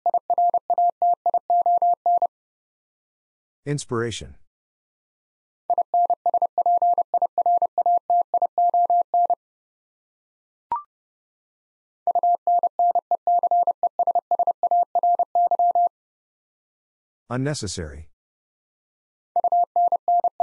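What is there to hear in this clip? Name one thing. Morse code beeps are keyed out rapidly in a steady high tone.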